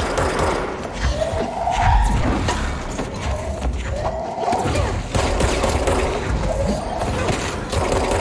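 Debris and glass clatter and shatter.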